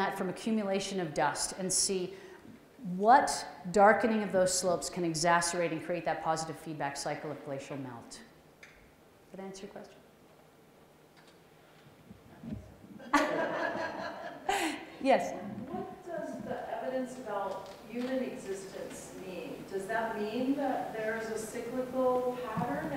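A woman speaks with animation through a microphone in a large echoing hall.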